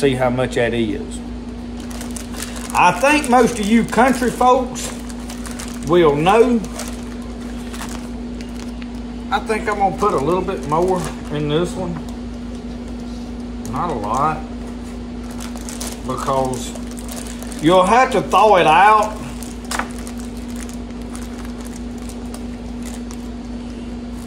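A plastic bag crinkles in a man's hands.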